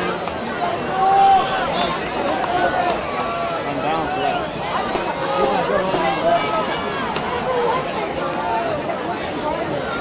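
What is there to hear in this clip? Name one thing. A large outdoor crowd cheers and chatters.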